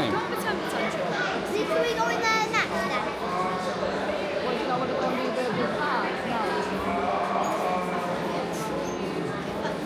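A crowd of people chatter indistinctly in the background.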